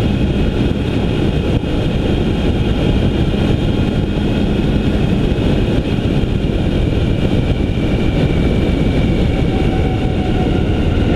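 A vehicle drives steadily along a road.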